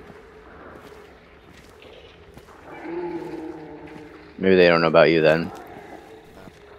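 Footsteps crunch softly on stone and grass.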